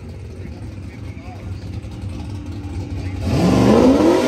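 A race car engine idles with a low rumble.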